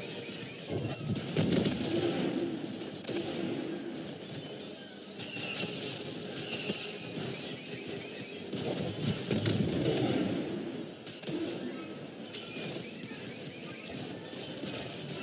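Blasters fire with sharp zapping shots.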